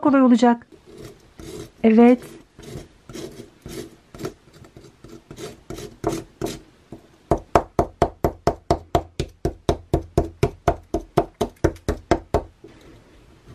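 A plastic tool scrapes and taps rapidly against crumbly plaster.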